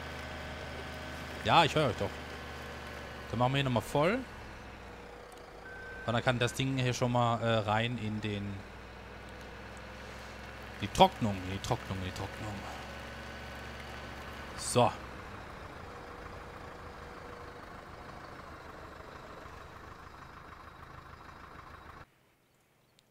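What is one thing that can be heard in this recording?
A diesel engine hums steadily.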